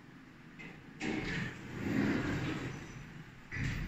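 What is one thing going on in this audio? Elevator doors slide open with a low rumble.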